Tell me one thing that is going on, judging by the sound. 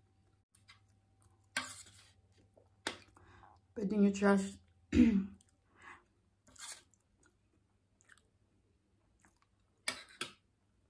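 A young woman chews food noisily up close.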